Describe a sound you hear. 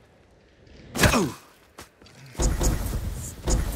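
A character lands heavily with a thud after a jump.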